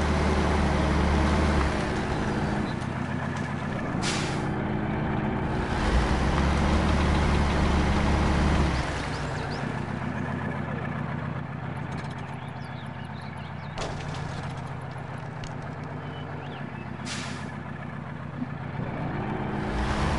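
A heavy truck engine rumbles and strains, revving up and down.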